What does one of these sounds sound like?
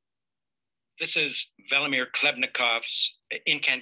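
An older man recites loudly and with animation into a microphone.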